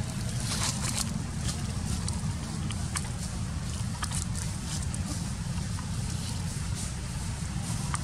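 A plastic bottle crinkles as a young monkey handles it.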